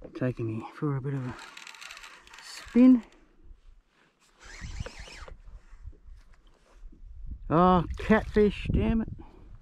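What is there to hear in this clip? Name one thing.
A baitcasting fishing reel is cranked, its gears whirring.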